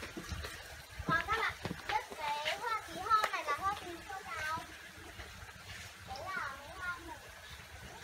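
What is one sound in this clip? Young girls talk and call out with animation nearby.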